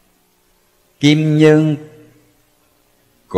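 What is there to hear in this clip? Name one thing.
A man chants a single long, drawn-out note through a microphone, echoing as it fades.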